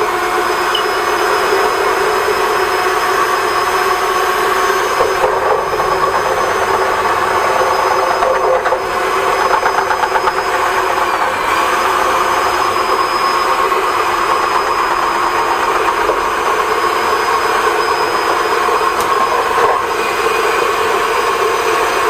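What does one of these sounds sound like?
A vacuum cleaner runs with a loud, steady whine.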